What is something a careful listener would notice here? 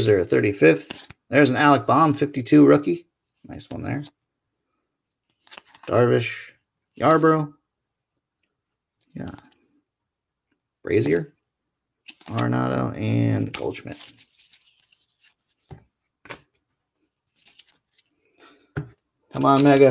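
Trading cards rustle and flick as hands shuffle through them.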